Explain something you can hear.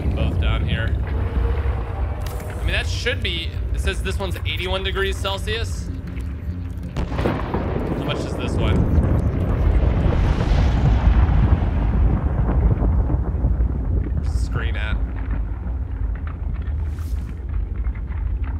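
A young man talks into a close microphone with animation.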